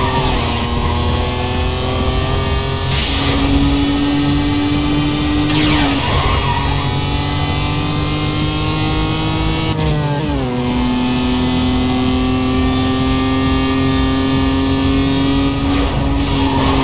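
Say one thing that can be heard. A race car engine roars steadily at high revs, shifting gears now and then.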